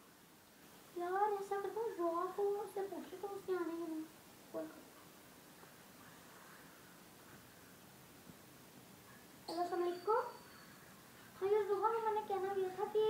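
A young boy speaks close by, in short phrases.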